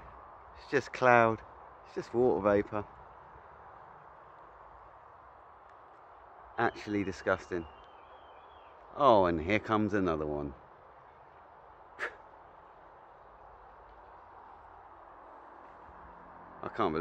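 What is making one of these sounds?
A man speaks calmly, close to the microphone, in short bursts.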